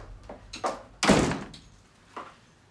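A door closes with a thud.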